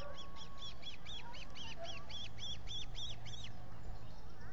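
An osprey calls with quick, repeated high chirps.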